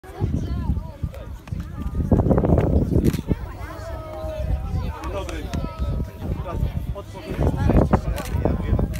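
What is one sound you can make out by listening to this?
Boys chatter nearby outdoors.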